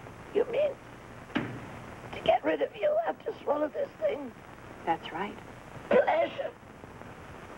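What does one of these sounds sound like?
An elderly woman speaks in a tearful, distressed voice.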